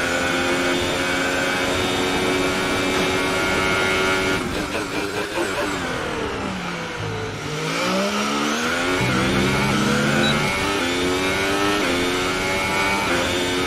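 A racing car engine whines at high revs, drops in pitch while braking into a corner, then revs up again through the gears.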